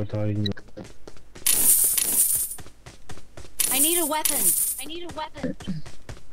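Footsteps run quickly over sand.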